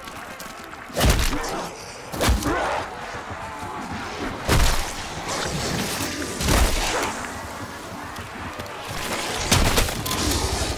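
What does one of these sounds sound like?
Heavy blows thud on zombies.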